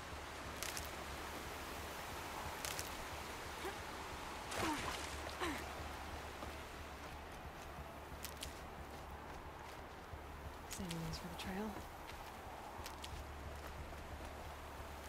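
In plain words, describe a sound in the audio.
Footsteps crunch over grass and loose stones.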